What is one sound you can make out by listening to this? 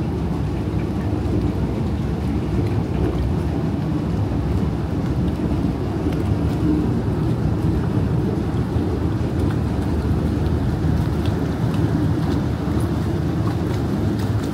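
Water laps gently against a boat's hull.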